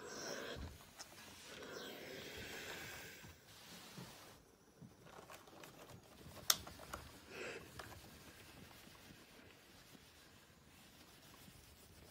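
A steam iron hisses as it glides over fabric.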